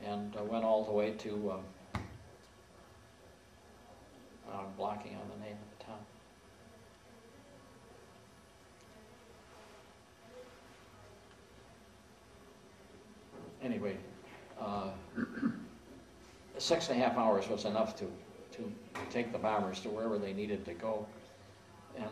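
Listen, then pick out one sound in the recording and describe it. An elderly man speaks slowly and thoughtfully, close to a microphone, with long pauses.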